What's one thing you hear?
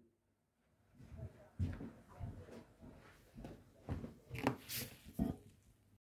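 Footsteps thud across the floor, moving away.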